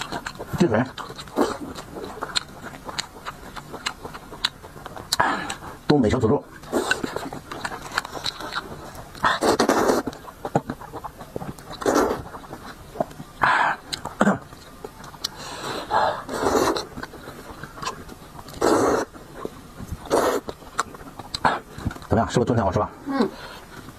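A man chews food wetly.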